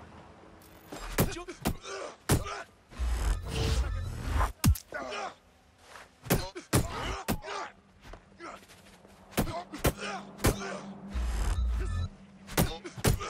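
Heavy punches and blows land in a scuffle.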